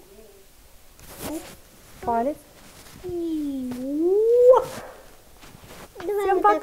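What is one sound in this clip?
Young children sing.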